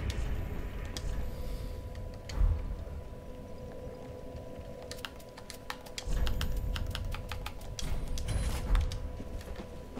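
Menu clicks tick softly in quick runs.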